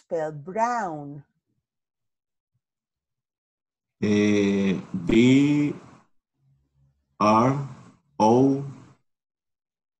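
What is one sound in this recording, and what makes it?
A woman speaks slowly and clearly over an online call.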